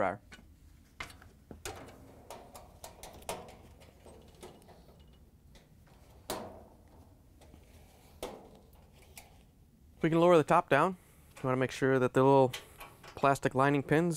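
A metal panel clicks and rattles as it is handled.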